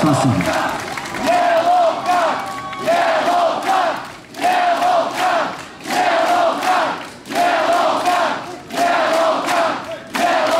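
A large crowd sings a melody together in rhythmic bursts, echoing in a large hall.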